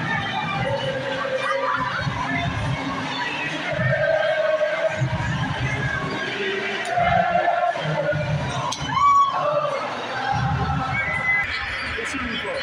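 A crowd of fans chants and cheers loudly in an echoing hall.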